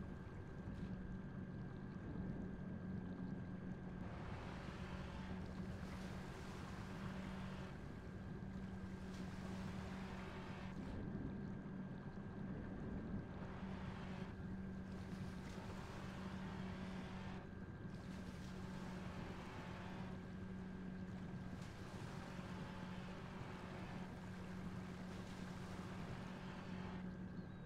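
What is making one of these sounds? A small submarine's engine hums steadily.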